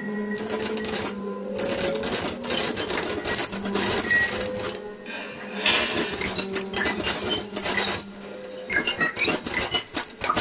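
Electronic synthesizer music plays with pulsing, crackling textures.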